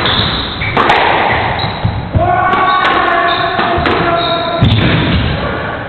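A squash ball smacks sharply off rackets and walls in an echoing hall.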